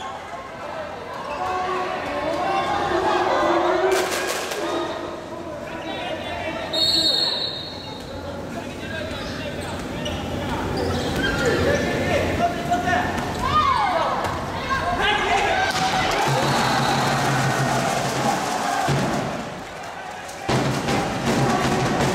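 A large crowd cheers and chants in an echoing hall.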